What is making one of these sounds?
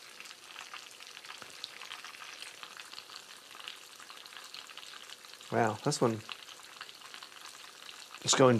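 Oil sizzles and crackles steadily in a frying pan.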